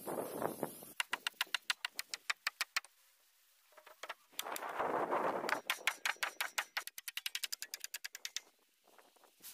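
A mallet knocks a wooden beam into place with sharp blows.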